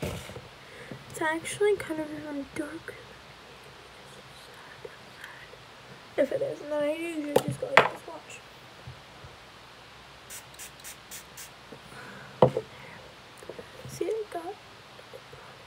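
A girl talks close to a microphone in short phrases.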